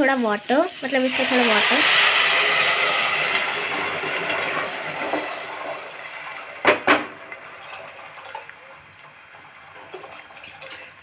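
Water pours into a pot with a splashing gush.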